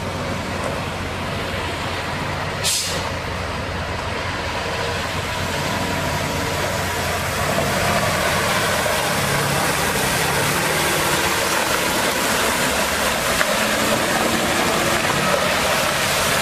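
Water sprays hard onto dirt ground with a steady hiss.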